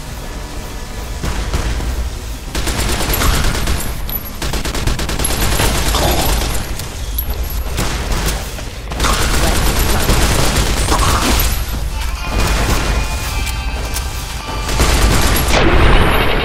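A laser gun fires zapping shots again and again.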